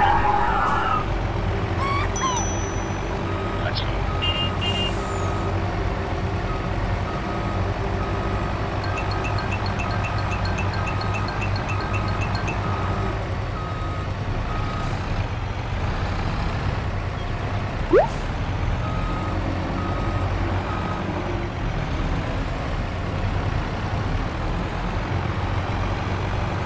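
A tractor engine rumbles steadily as the vehicle drives along.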